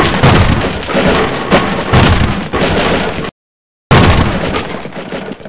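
A metal crowbar strikes a wooden crate with heavy knocks.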